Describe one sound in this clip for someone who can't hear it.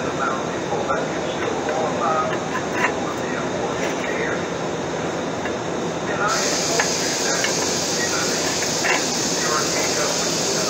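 A fan blows with a steady whoosh.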